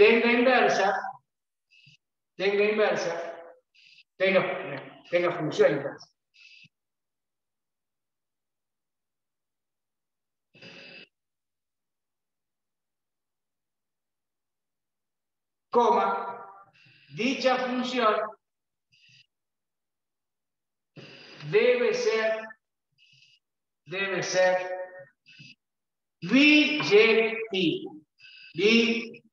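A middle-aged man speaks calmly and clearly, close to a microphone, in pauses.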